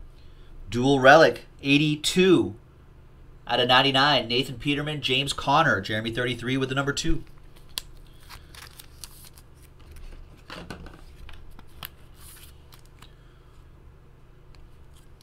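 Cardboard and plastic card sleeves rustle and tap as they are handled.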